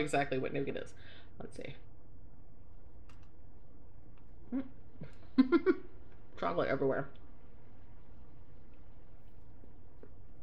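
A woman chews food with a soft crunch.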